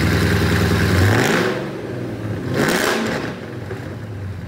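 A car engine revs up sharply and settles back, echoing in a large hall.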